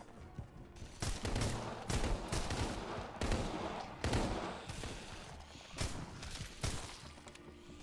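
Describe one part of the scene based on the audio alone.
Pistol shots crack in quick bursts.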